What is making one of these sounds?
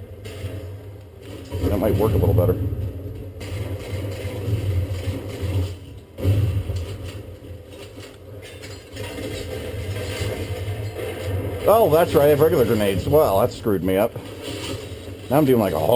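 Video game sound effects play from a nearby speaker.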